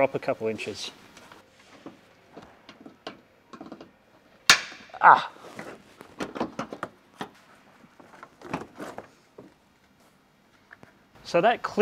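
Plastic trim clicks and snaps as it is pried loose.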